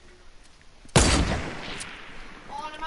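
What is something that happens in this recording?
A rifle fires a single loud shot that rings out and fades.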